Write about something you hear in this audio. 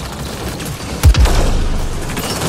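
A heavy blast booms.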